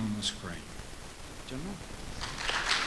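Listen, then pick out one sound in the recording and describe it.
An elderly man speaks briefly through a microphone in a large hall.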